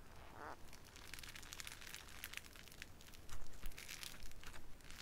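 Hands squish and stretch a soft, crackly slime, making quick crisp crackles and pops.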